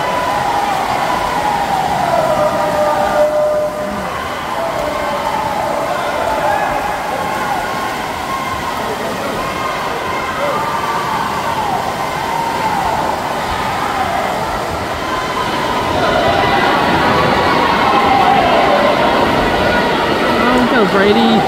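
Swimmers splash through the water.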